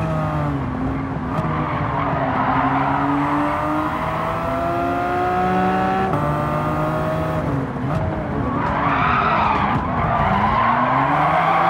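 A car engine revs up and down loudly, rising in pitch through each gear and dropping at each gear change.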